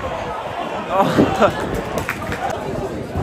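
A crowd cheers loudly as a shot goes toward goal.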